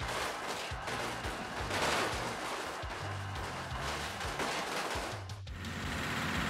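A heavy vehicle crashes and tumbles with loud metal bangs.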